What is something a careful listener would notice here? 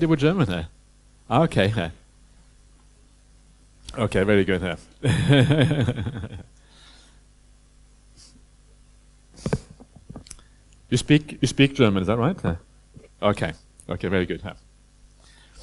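An elderly man speaks calmly into a close microphone, with pauses.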